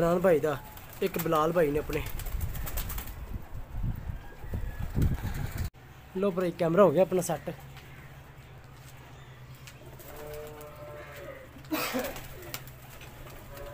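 Pigeon wings flap and flutter.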